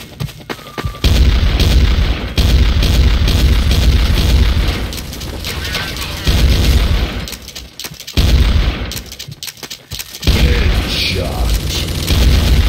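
A gun fires in loud rapid bursts.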